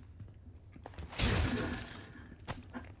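A wooden crate splinters and breaks apart.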